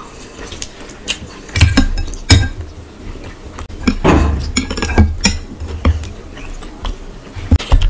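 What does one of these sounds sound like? A ladle clinks against a bowl.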